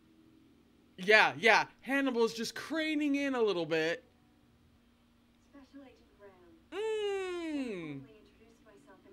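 A young woman laughs and exclaims loudly close to a microphone.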